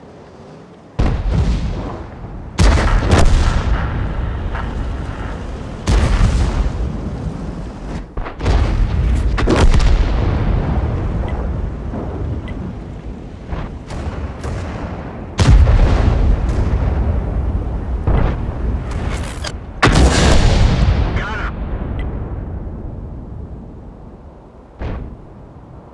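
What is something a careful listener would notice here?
Heavy cannon shots boom and rumble away, again and again.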